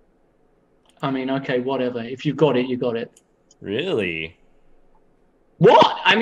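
A second man talks and laughs over an online call.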